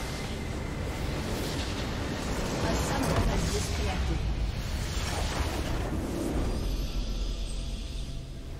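A massive blast roars and rumbles loudly.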